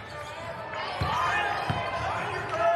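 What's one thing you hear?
A basketball bounces with dull thuds on the floor.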